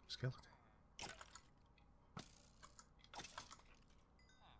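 A sword strikes a rattling skeleton with sharp hits.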